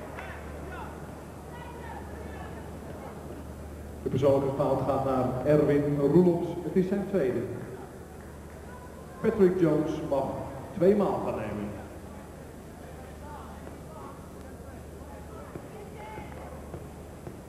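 Basketball shoes squeak on a wooden court.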